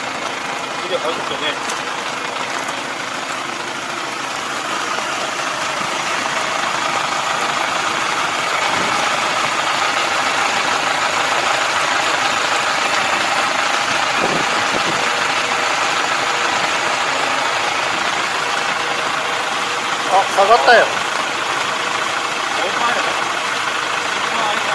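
A tractor engine runs steadily close by.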